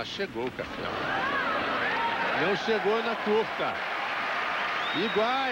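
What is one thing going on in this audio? A large crowd applauds loudly outdoors.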